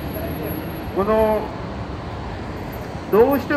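An elderly man calls out loudly through a microphone in short bursts.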